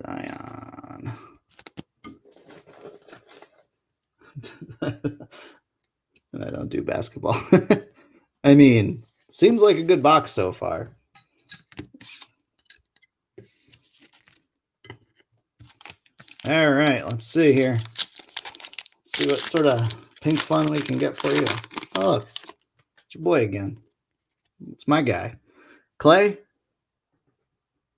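Foil card packs crinkle and tear open.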